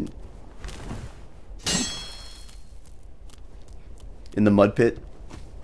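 Metal armour clinks with heavy footsteps.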